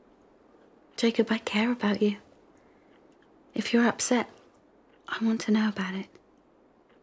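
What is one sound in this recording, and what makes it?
A woman speaks softly and gently close by.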